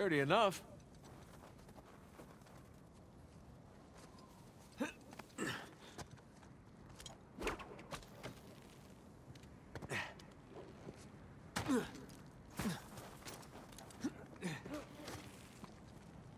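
Footsteps crunch on snow and gravel.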